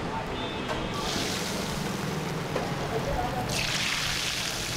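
Hot oil sizzles loudly in a pan.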